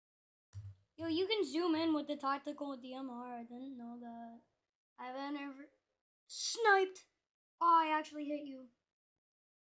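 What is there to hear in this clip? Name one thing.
A girl talks with animation close to a microphone.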